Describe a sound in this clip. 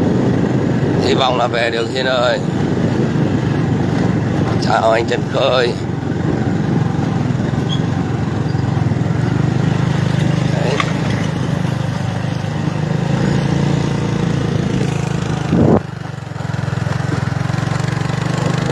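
A motorcycle engine runs as it rides along a dirt road.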